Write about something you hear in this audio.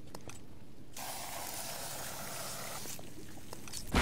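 Explosive gel sprays out with a hiss.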